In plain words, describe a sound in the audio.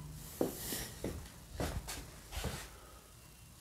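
Footsteps walk briefly nearby.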